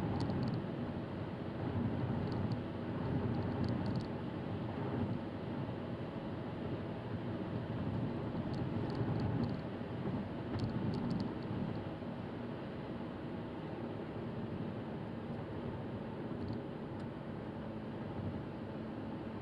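Tyres roll over the road with a steady rumble, heard from inside the car.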